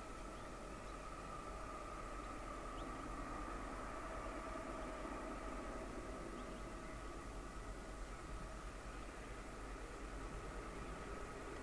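A diesel train rumbles faintly in the distance, slowly drawing closer.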